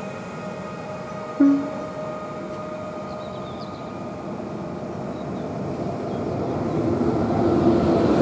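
An electric train pulls away and fades into the distance.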